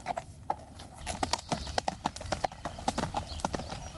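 A horse's hooves clop on a dirt path.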